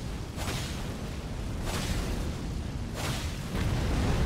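Heavy blows thud and crash repeatedly.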